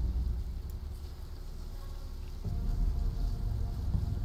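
Tall grass rustles as someone creeps through it.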